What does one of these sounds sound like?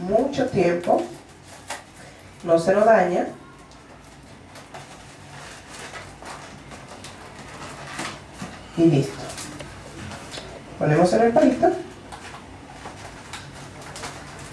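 A foil balloon crinkles in a woman's hands.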